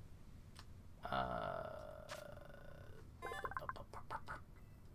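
A bright electronic jingle plays.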